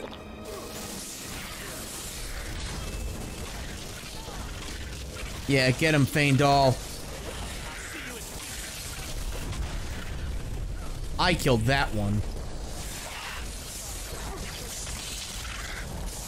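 A frost spell hisses and sprays in bursts.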